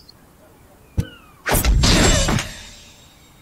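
Metal blades clash.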